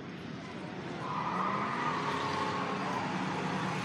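Another car engine approaches from a distance, growing louder.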